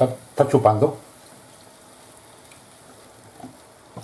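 Milk pours into a pan with a soft splash.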